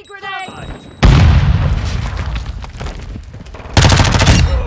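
A loud explosion booms and debris scatters.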